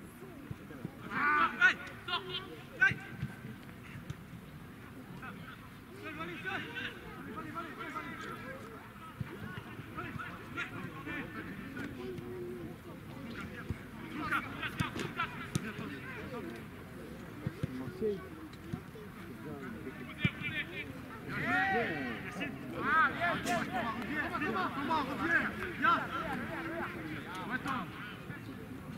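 A football thumps as it is kicked.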